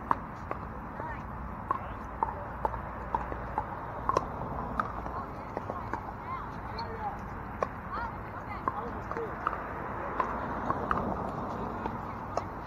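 Paddles pop against plastic balls in quick, sharp hits, near and far.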